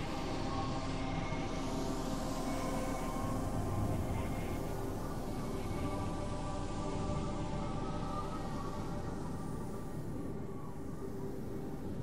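A car engine hums on a road nearby and slowly fades into the distance.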